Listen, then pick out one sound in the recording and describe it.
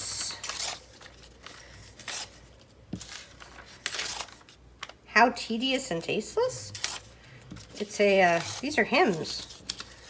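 Paper tears.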